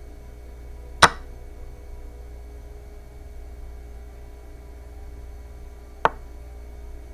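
A game move clicks sharply a few times.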